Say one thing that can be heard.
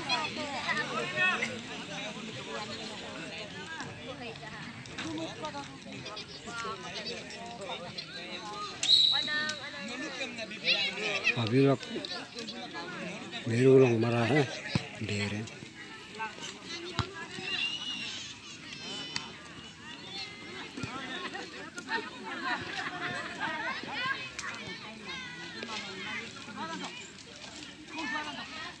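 Boys shout and call to each other outdoors at a distance.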